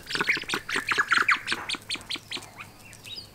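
Guineafowl give a rapid, loud rattling call close by.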